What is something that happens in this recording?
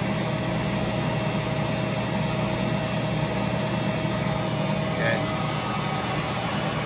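A machine hums steadily nearby.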